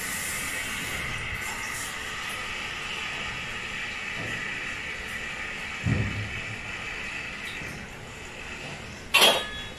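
Dishes clatter and clink in a sink.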